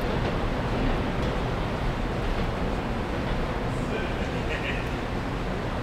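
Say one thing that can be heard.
A crowd murmurs on a platform nearby.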